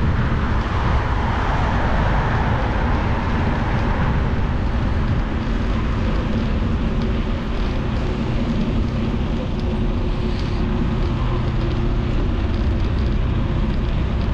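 Wind rushes loudly past a moving motorcycle.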